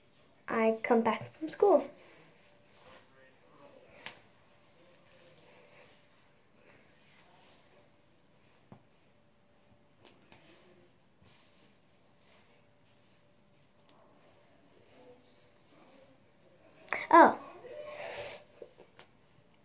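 A hairbrush scrapes through wet hair.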